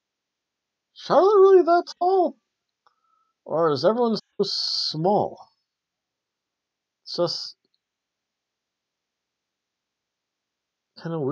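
A man talks with animation, close to a microphone, with pauses.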